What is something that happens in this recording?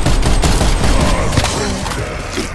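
A heavy melee weapon thuds and crashes into enemies.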